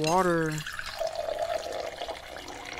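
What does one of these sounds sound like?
Water splashes as a can is refilled from a barrel.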